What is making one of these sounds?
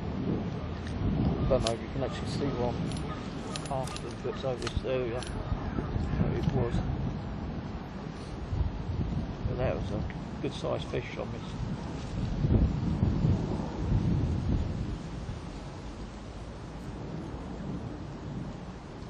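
Wind gusts and rumbles outdoors across the water.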